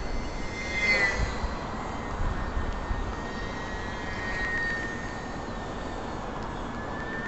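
Wind rumbles and buffets against the microphone.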